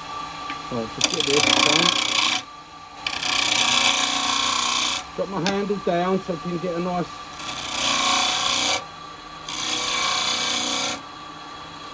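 A chisel scrapes and hisses against spinning wood in bursts.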